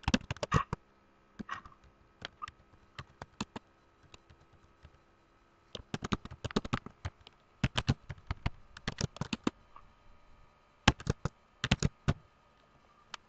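Keys clatter on a computer keyboard in quick bursts.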